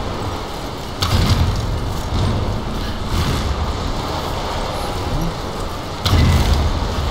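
An arrow is loosed from a bow with a sharp snap.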